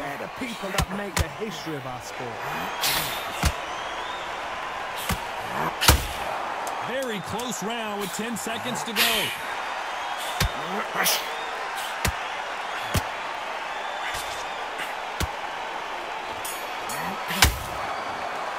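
Punches land with sharp thuds on a boxer.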